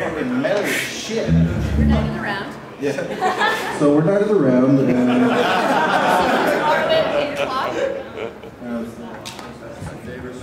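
A band plays amplified acoustic guitars, bass and drums.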